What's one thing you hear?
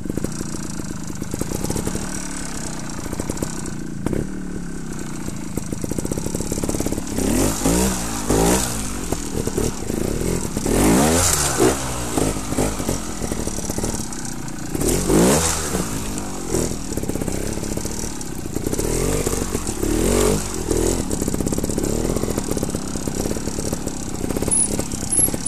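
A motorcycle engine idles and revs in bursts close by.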